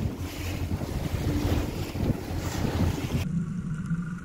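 An outboard motor roars as a boat speeds over the water.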